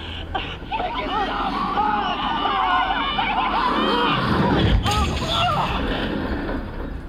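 A woman screams and cries out in distress through a loudspeaker.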